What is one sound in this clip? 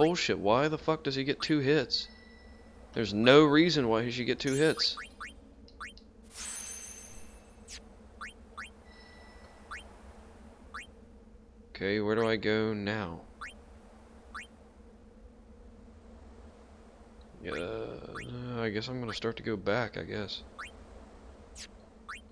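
Short electronic blips tick as a menu cursor moves.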